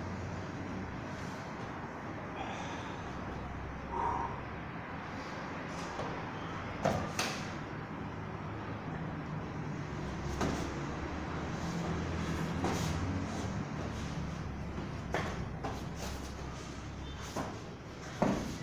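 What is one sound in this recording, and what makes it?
Bodies thud and shuffle on a padded mat in an echoing room.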